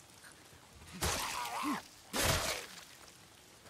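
Heavy blows land with dull thuds.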